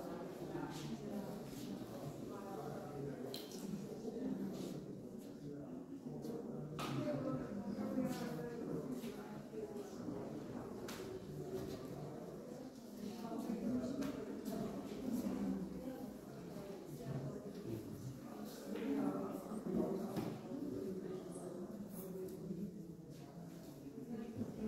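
Men talk quietly and murmur nearby.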